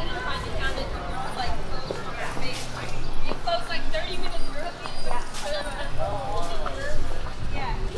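A plastic bag rustles as a woman walks.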